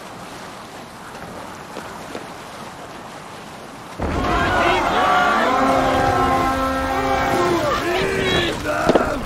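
Water splashes softly against a wooden boat as it glides along.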